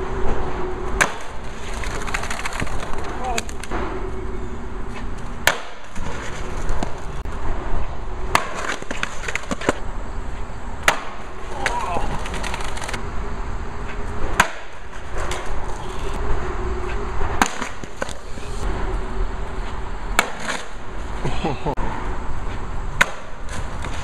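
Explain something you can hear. A skateboard slams onto concrete.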